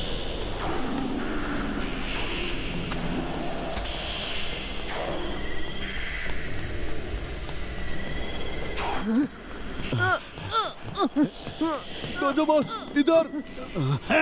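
A boy speaks with animation.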